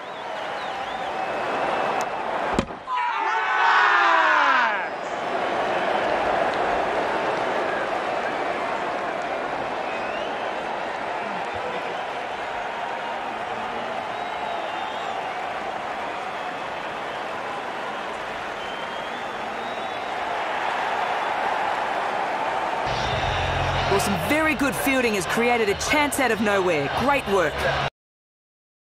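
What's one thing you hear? A large stadium crowd cheers and murmurs steadily.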